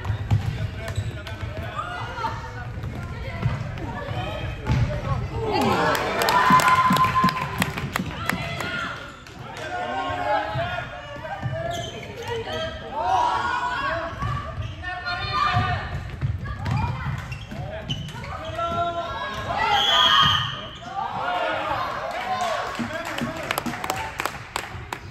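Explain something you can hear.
Young women shout and call out to each other across a large echoing hall.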